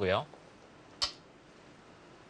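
A stone clicks onto a wooden board.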